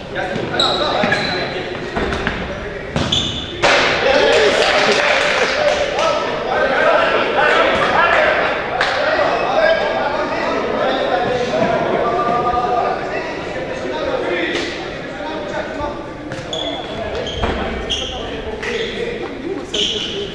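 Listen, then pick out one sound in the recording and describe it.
A ball is kicked with dull thumps.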